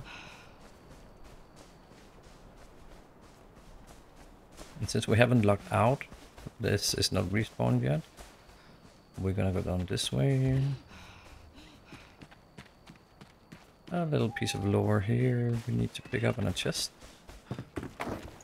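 Footsteps crunch softly along a dirt path.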